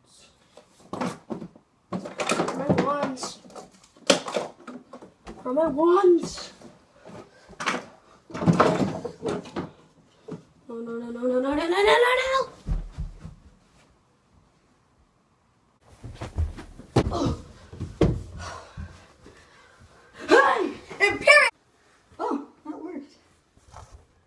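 A young boy talks and exclaims with animation close by.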